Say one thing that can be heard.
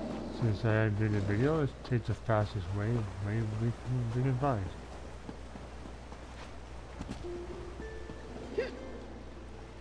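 Footsteps pad softly over grass and rock.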